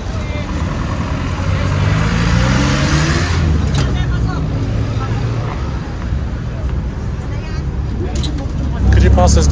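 A vehicle engine rumbles and revs up while driving.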